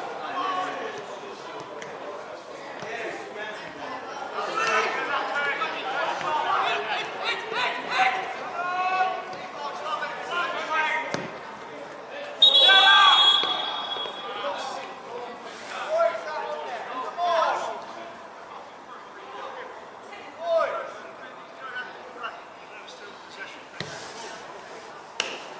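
Players shout and call to each other across an open outdoor pitch.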